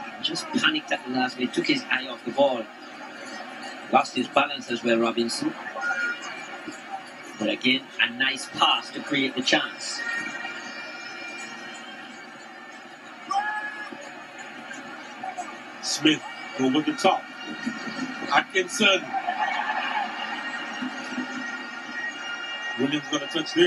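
A large stadium crowd murmurs and cheers steadily outdoors.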